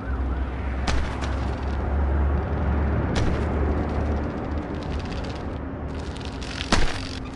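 Bicycle tyres thump as they land on wooden ramps.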